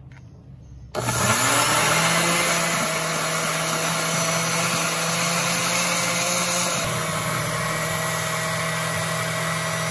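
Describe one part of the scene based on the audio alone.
A blender motor whirs loudly and steadily, churning liquid.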